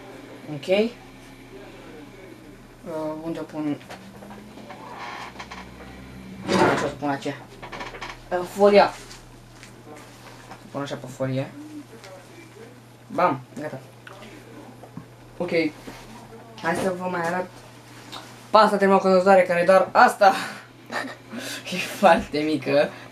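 A teenage boy talks casually, close by, in bursts.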